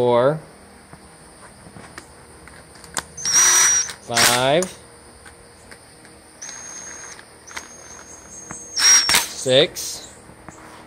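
A power tool whirs in short bursts.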